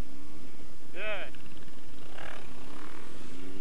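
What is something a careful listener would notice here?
A motorcycle engine revs sharply in short bursts.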